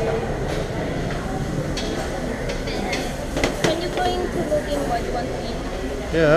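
Many people chatter throughout a busy room.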